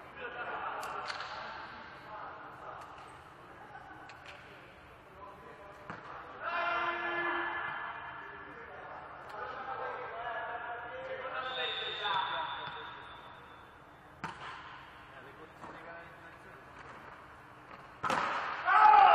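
A volleyball is struck with a sharp slap.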